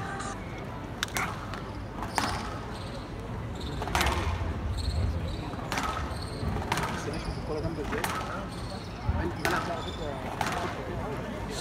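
A squash ball smacks sharply off racquets and walls, echoing in a hall.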